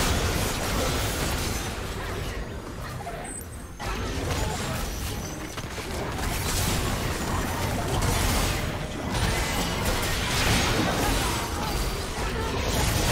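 Spell blasts, hits and clashing effects of a video game battle crackle and boom.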